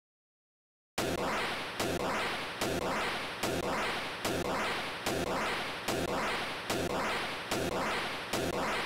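Loud game explosions burst in rapid repeating booms.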